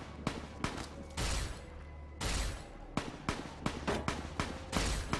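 A heavy energy gun fires repeated sharp blasts.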